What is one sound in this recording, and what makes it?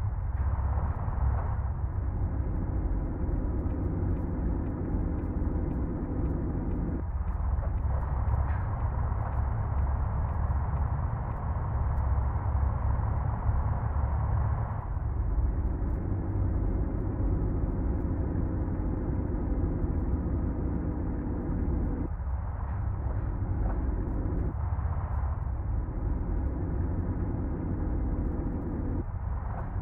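A truck engine rumbles steadily, rising and falling as it speeds up and slows down.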